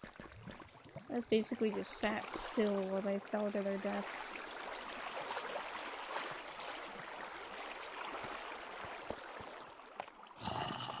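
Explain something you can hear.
Water flows and trickles steadily.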